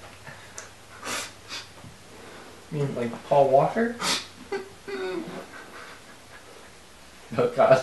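A man talks in a strained, pained voice close by.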